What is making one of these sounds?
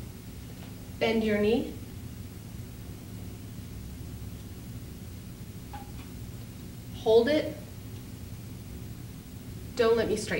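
A woman calls out short, firm commands close by.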